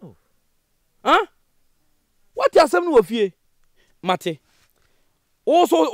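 A man speaks forcefully and with animation up close.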